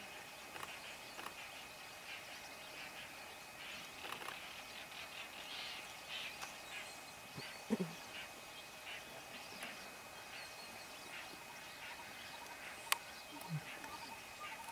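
A lioness grunts softly nearby.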